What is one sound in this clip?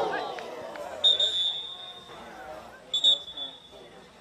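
A referee's whistle blows in two short sharp blasts.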